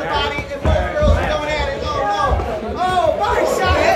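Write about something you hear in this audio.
Boxing gloves thud against each other.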